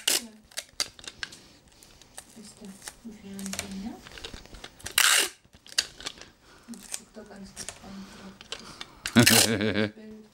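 Small plastic parts click and tap.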